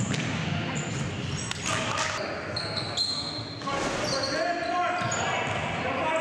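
Sneakers squeak sharply on a hard floor in an echoing gym.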